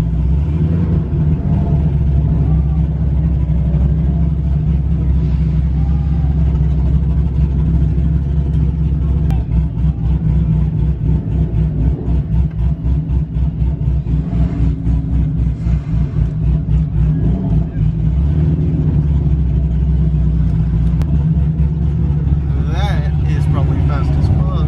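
A car engine rumbles loudly up close, with a throbbing, lumpy idle for a stretch.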